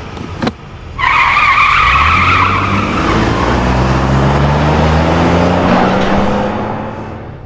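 A car engine revs loudly and climbs in pitch.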